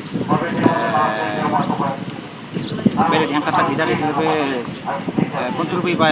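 A man speaks emphatically into a nearby microphone, outdoors.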